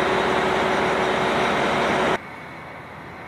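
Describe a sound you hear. A train rumbles loudly past close by.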